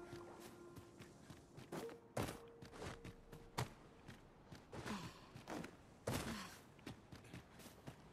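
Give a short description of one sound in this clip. Footsteps thud and scrape on rock and grass.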